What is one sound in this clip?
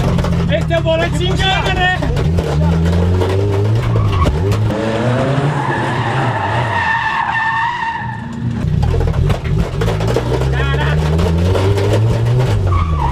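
A car engine revs hard and roars close by.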